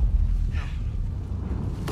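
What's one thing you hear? A man says a word quietly and tensely.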